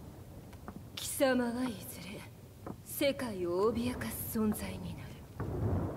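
A young woman speaks calmly and close.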